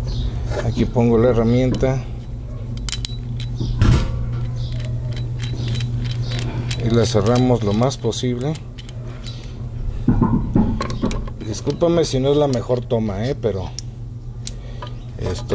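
Metal tools clink and scrape against a brake part.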